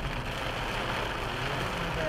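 A windscreen wiper swipes across the glass.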